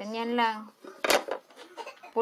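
A wooden paddle knocks once against a hard table.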